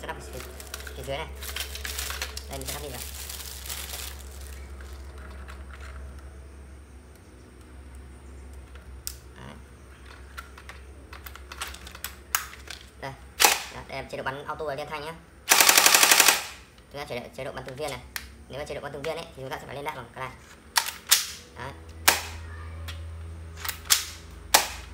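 Plastic parts of a toy gun click and rattle as hands handle it.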